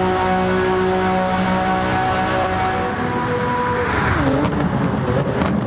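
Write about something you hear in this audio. A racing car engine roars at high revs as the car speeds past.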